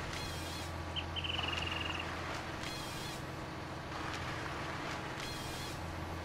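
A harvester saw cuts through a log.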